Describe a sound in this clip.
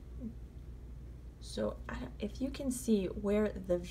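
Yarn softly rustles as a needle draws it through knitted stitches.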